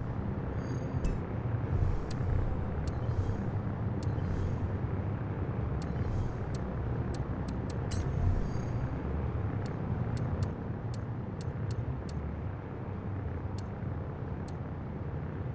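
Short menu clicks tick sharply, one after another.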